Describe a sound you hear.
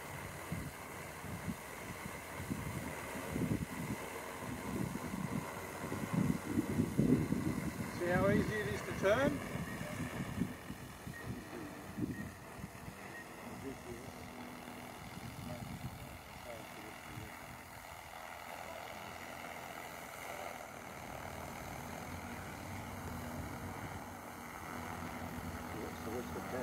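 A drone buzzes steadily in the air nearby.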